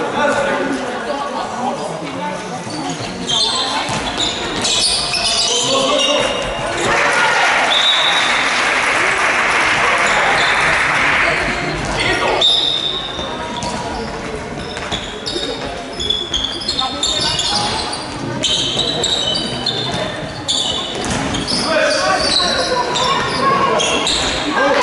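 Sneakers squeak sharply on a hall floor.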